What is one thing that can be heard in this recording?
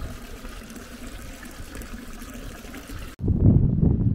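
Water splashes into a stone fountain basin.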